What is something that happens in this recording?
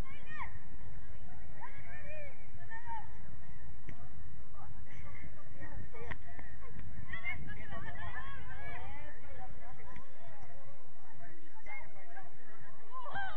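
Young women shout and call out to each other from a distance.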